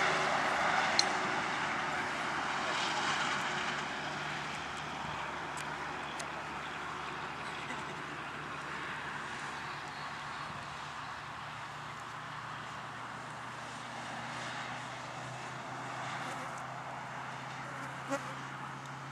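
A golf putter taps a ball with a light click.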